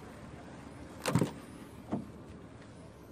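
A car door latch clicks and the door thuds open.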